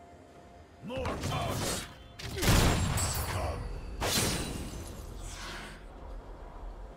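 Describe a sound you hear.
Video game spell blasts and hits crackle and thud during a fight.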